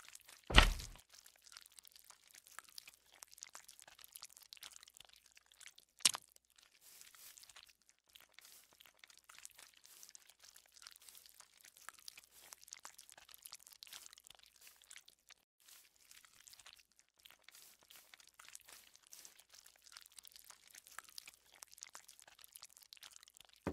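Thick slime oozes and crackles softly and steadily.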